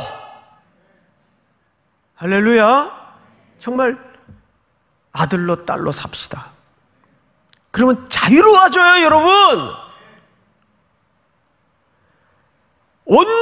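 A middle-aged man speaks expressively into a microphone, with pauses between phrases.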